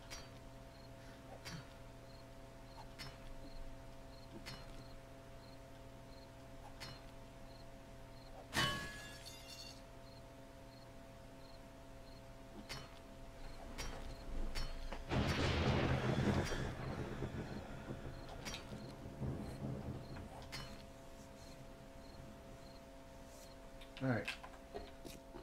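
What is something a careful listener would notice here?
A pickaxe strikes stone again and again at a steady pace.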